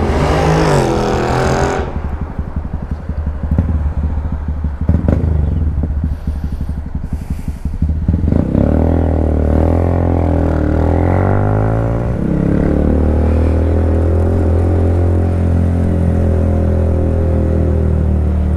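A motorcycle engine revs and pulls away, rising and falling in pitch.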